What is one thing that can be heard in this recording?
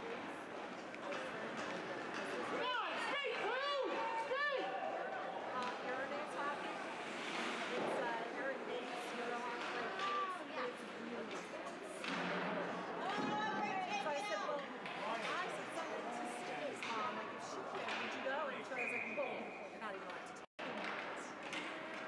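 Spectators shout and cheer nearby.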